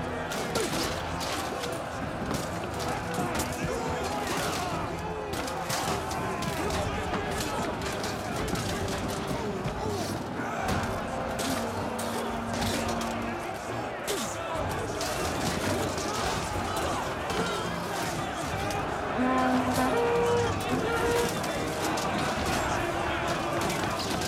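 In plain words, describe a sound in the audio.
A crowd of men shout and yell in battle.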